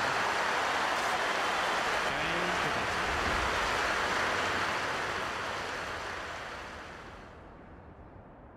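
A large crowd applauds loudly, then the applause fades away.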